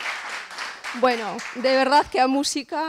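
A woman speaks with animation to an audience.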